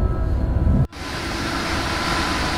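A passing train rushes by outside with a loud roar of wind.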